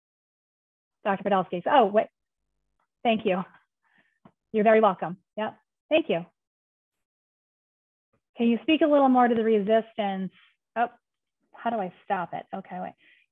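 A woman speaks calmly through a microphone on an online call, with pauses.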